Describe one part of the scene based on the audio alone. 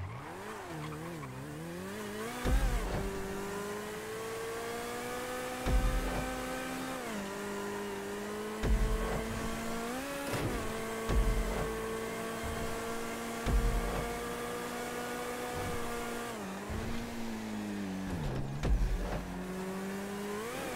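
A sports car engine roars steadily at high revs.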